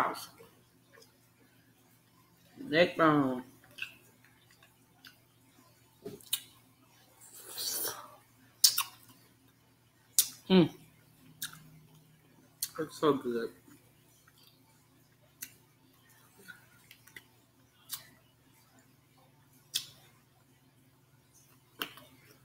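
A woman chews and smacks her lips loudly, close to a microphone.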